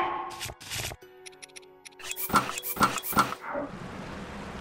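Menu selection clicks and chimes sound in quick bursts.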